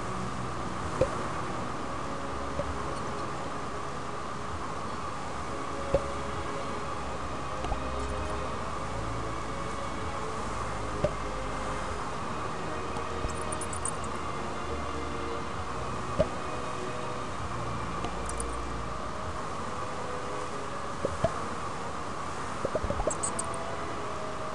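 Short pops sound as small balls are sucked into a pipe.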